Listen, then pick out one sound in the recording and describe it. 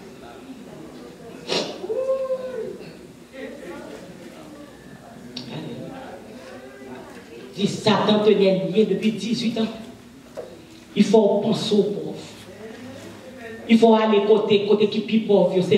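A woman speaks and sings with feeling into a microphone, heard through loudspeakers.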